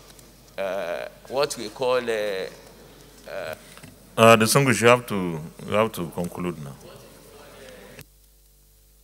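A man speaks into a microphone in a large room, pausing often.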